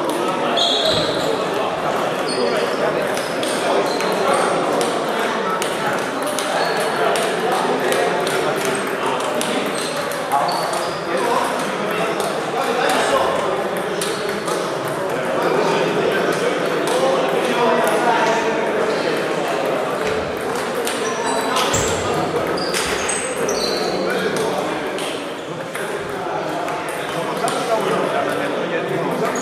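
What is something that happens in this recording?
Table tennis balls click rapidly on tables and paddles in a large echoing hall.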